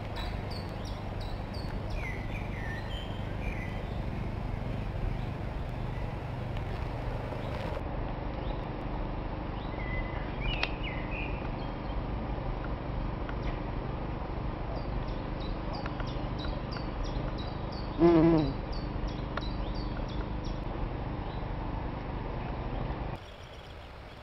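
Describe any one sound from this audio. A bumblebee buzzes close by.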